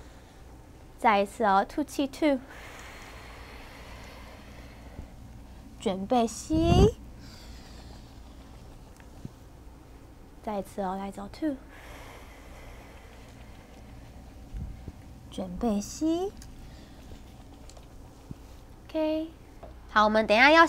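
A young woman gives calm instructions close to a microphone.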